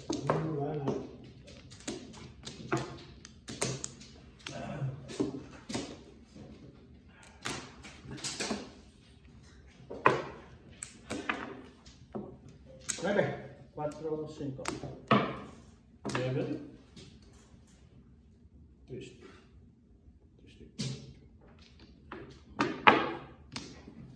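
Plastic game tiles clack and click against each other on a table.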